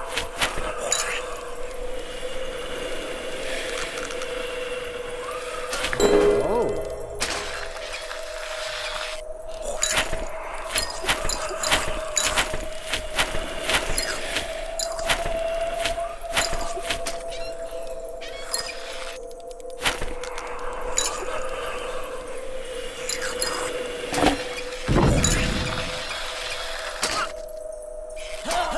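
Soft electronic game music plays with a steady, sustained drone.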